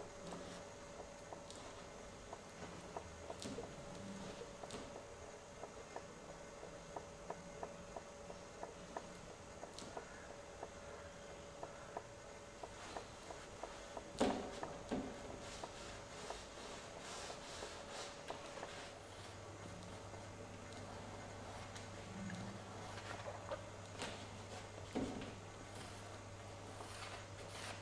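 A brush softly strokes paint onto canvas.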